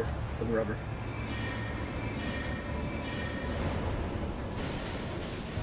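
A magic spell shimmers and crackles as it is cast.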